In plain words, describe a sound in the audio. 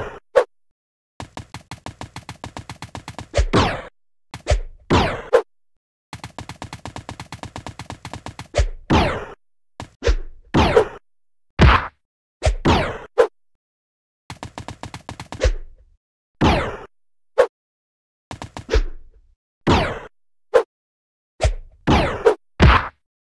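A short springy jump sound plays again and again.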